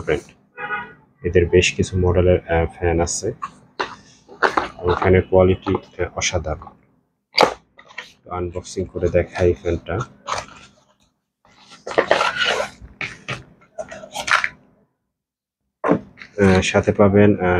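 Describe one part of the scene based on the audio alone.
A cardboard box rustles and taps as hands turn it over.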